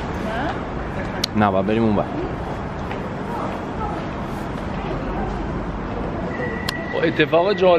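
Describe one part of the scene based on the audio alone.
A train hums at a platform outdoors.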